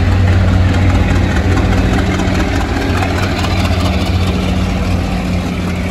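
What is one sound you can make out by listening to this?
Train wheels clatter and rumble over rail joints as the carriages pass close by.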